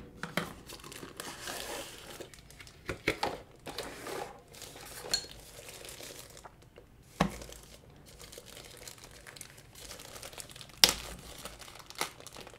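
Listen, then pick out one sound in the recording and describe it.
Thin plastic wrap crinkles as hands handle it.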